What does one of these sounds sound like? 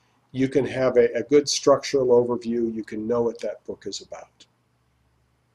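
A middle-aged man speaks calmly and clearly into a close microphone.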